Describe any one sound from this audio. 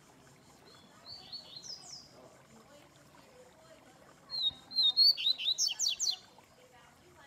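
A caged bird chirps in short, sharp bursts.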